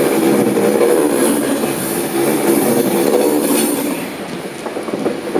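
A passenger train rushes past close by with a loud rumble and rattle of wheels on the rails.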